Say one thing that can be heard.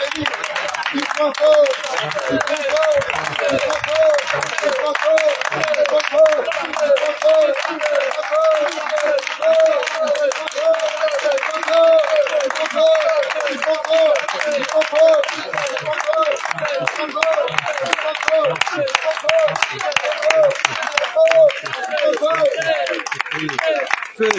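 A group of women sings loudly together outdoors.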